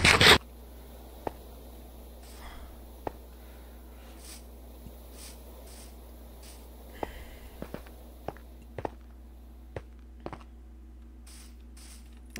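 Footsteps tap on stone and grass.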